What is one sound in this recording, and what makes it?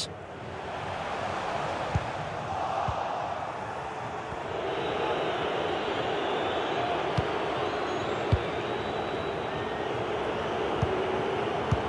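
A stadium crowd murmurs and roars.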